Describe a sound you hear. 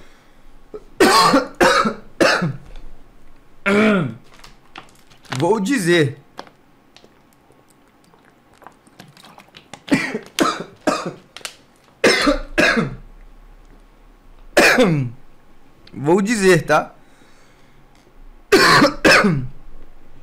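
A young man coughs into his fist.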